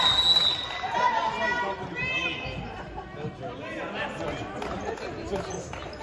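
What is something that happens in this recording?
Young girls shout and call out during play.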